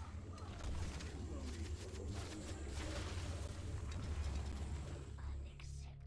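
A laser beam fires with a crackling roar.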